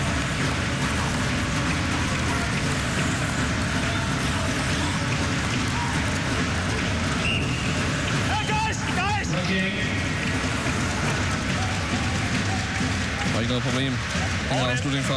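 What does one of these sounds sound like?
A large crowd roars steadily in an echoing arena.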